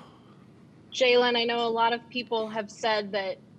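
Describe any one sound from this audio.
A young man speaks calmly into a microphone, close by.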